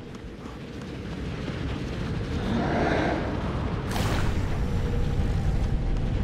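A swirling rush of energy roars and grows louder.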